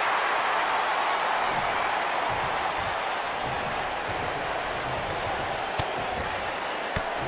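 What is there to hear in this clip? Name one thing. A large crowd cheers and roars steadily in an arena.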